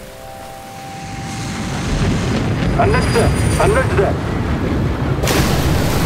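An airplane roars overhead through a storm.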